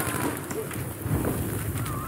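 Flames crackle close by.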